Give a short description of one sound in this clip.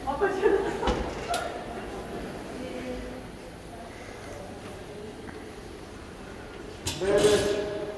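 A hospital bed rolls along a floor on its wheels.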